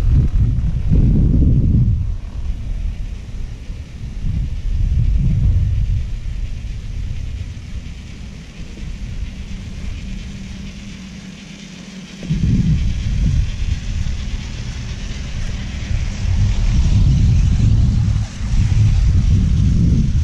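Wind gusts and buffets loudly outdoors.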